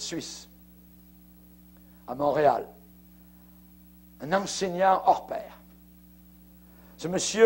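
An older man speaks slowly and forcefully through a microphone, with pauses between phrases.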